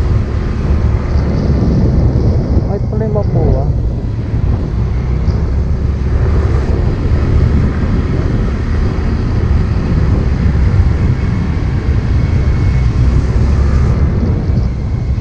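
Wind rushes past a helmet microphone outdoors.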